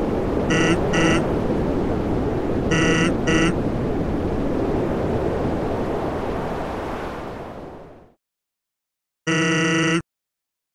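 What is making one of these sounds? Short electronic beeps chirp in quick bursts.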